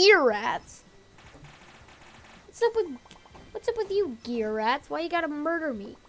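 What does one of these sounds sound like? Cartoonish game attack effects whoosh and pop.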